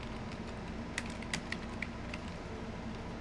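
Keyboard keys click sharply a few times.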